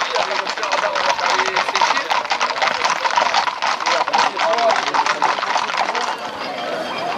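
Horses' hooves clop on a paved road.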